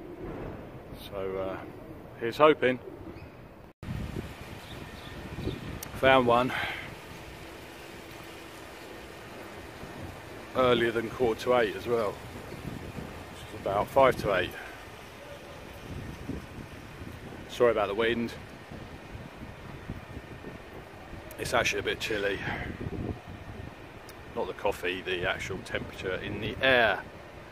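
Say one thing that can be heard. A middle-aged man talks with animation close to the microphone, outdoors.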